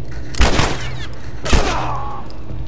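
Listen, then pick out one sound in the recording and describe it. A pistol fires two loud shots that echo.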